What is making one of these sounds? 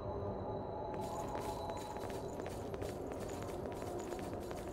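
Footsteps patter quickly on a hard stone floor.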